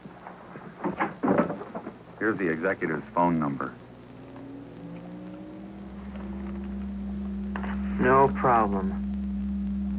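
A young man answers quietly.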